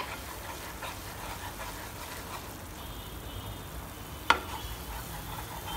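A wooden spatula scrapes and stirs thick food in a pan.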